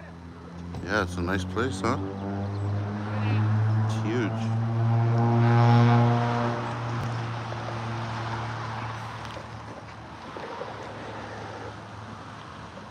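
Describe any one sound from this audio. A car engine hums as a car drives up and passes close by.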